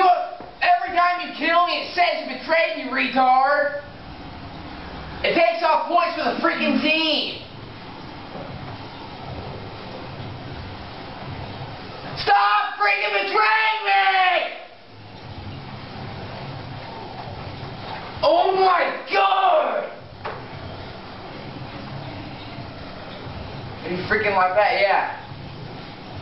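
A man speaks in short bursts from across a room.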